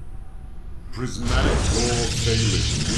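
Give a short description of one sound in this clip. A game's energy effect flares with a sudden whooshing burst.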